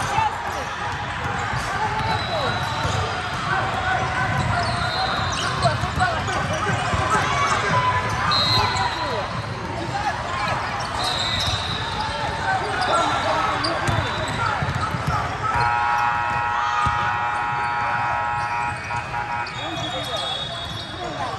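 Basketballs bounce on a wooden court in a large echoing hall.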